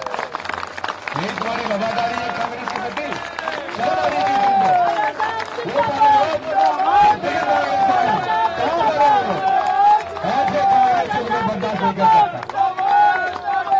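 An elderly man speaks forcefully into a microphone over a loudspeaker, echoing outdoors.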